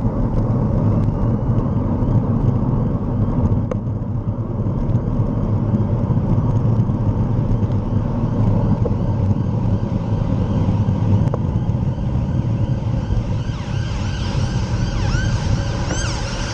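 Wind rushes loudly past, as if heard while riding fast outdoors.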